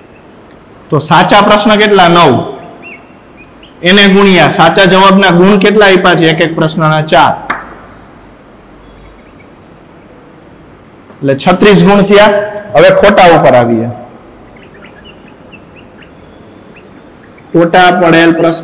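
A man speaks calmly and clearly, explaining in bursts with pauses.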